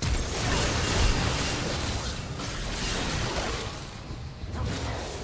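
Magic blasts crackle and boom in a fast game battle.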